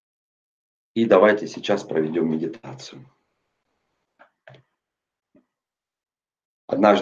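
A man speaks calmly and with animation over an online call.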